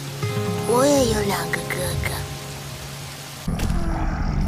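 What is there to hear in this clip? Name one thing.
A young girl speaks softly and close by.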